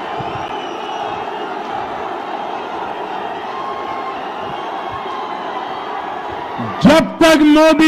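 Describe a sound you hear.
A crowd cheers and chants loudly outdoors.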